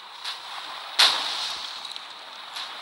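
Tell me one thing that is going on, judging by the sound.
An explosion booms with a sharp blast.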